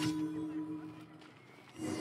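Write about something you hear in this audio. Footsteps tap on stone paving.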